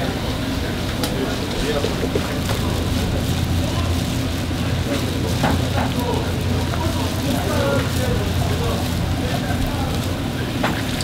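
Oil sizzles and bubbles steadily around frying patties.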